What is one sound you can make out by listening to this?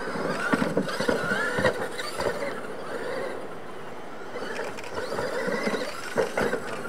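The tyres of radio-controlled monster trucks crunch over loose dirt.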